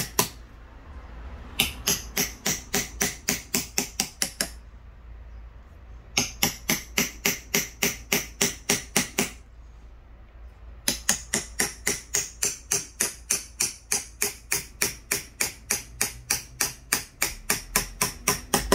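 A hammer taps rapidly and steadily on a chisel cutting into wood, in bursts with short pauses.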